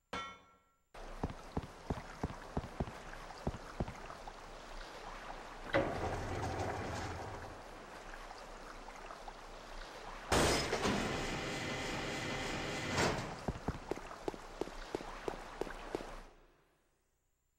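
A lift platform hums and rattles as it moves.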